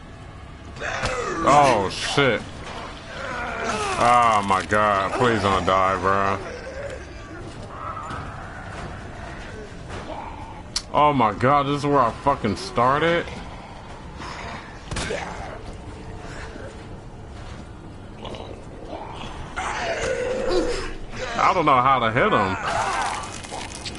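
A zombie groans and snarls close by.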